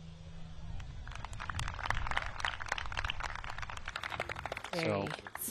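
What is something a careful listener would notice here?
A crowd cheers and claps outdoors.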